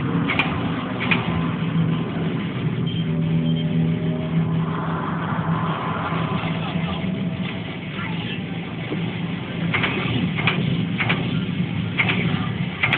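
An arcade game plays loud electronic music nearby.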